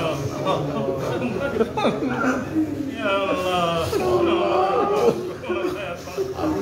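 An elderly man prays aloud in a chanting voice.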